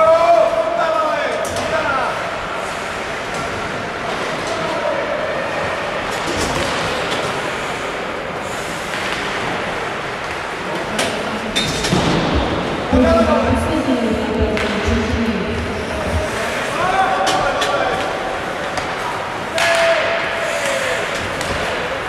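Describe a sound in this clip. Young men shout to each other across an echoing rink.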